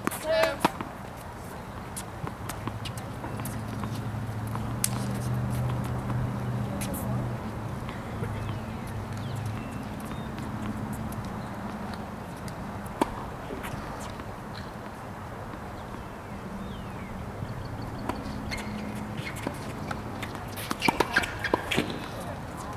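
Tennis balls are struck with rackets outdoors.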